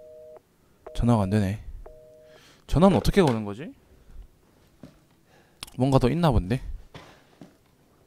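A voice speaks through a telephone handset.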